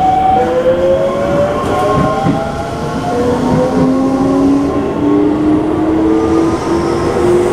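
An electric train motor whines, its pitch sliding steadily.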